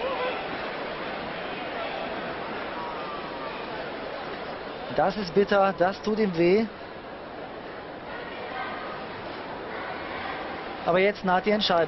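A large crowd murmurs in an echoing hall.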